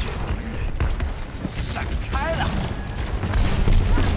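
A game weapon fires in rapid bursts.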